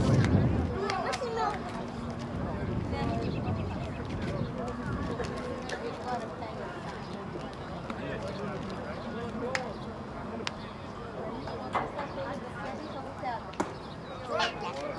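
Young men talk and call out at a distance outdoors.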